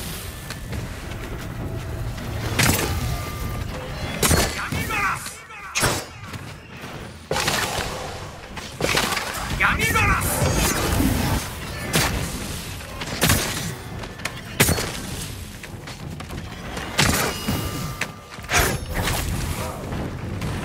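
Swords slash and clash in quick, sharp strikes.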